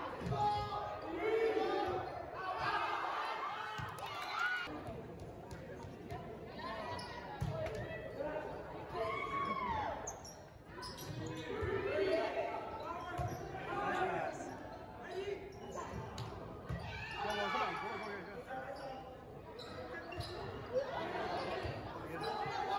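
Young players shout and call out to each other across a large echoing gym.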